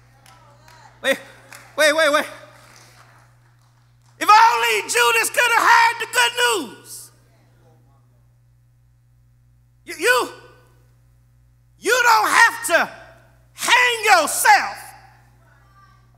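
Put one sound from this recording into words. A man preaches with animation into a microphone, in bursts with pauses.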